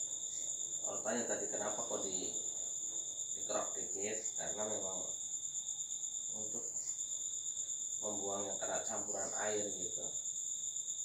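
A man talks in short bursts nearby.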